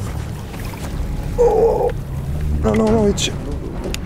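Water splashes beside a boat.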